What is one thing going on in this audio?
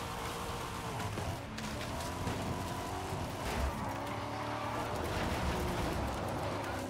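A sports car engine roars and revs at high speed.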